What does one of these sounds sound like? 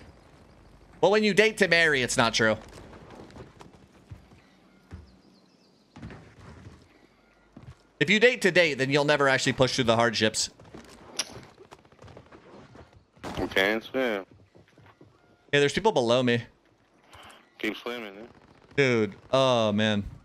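A young man talks into a close microphone.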